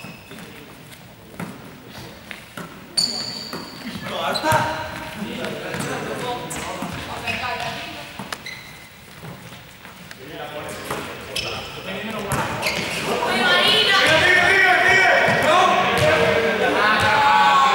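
A ball bounces on a hard floor.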